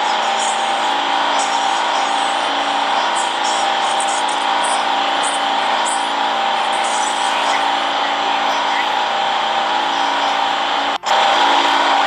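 A subway train rumbles and hums steadily while running.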